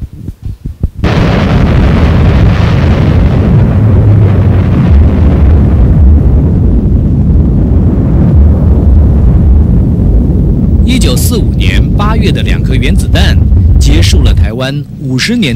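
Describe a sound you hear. A deep explosion roars and rumbles through loudspeakers.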